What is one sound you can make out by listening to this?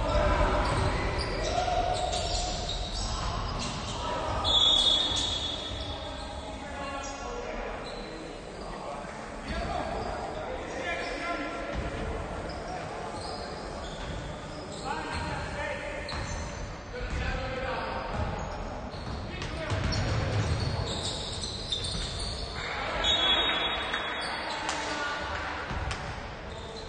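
Players call out to each other, echoing in a large hall.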